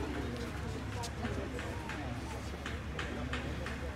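Young men chat quietly outdoors.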